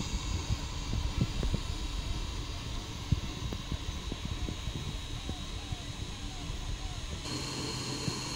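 A 3D printer's motors whir and buzz as the print head moves.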